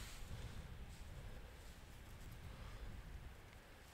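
A wooden peg is pushed into grassy ground with a soft rustle.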